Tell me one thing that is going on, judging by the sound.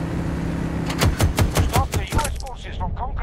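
A heavy gun fires a rapid burst of loud shots.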